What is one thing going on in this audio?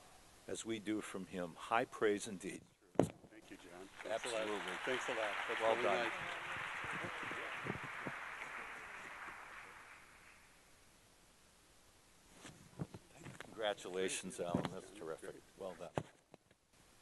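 An older man speaks calmly into a microphone through loudspeakers.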